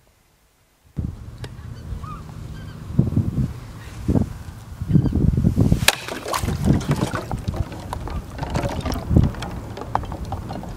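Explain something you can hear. Drops of water splash into a bucket outdoors.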